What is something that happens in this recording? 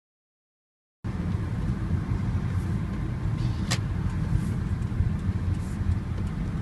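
A car engine rumbles low and steady from inside the car as it rolls slowly forward.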